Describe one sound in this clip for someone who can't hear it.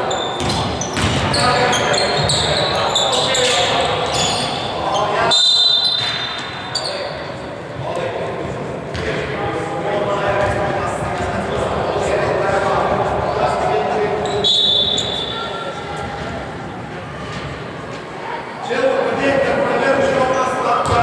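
Teenage boys shout and call out across a large echoing hall.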